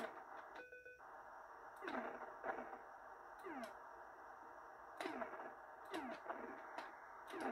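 A retro video game plays a steady, buzzing engine drone.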